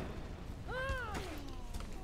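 A fiery blast bursts with a whoosh.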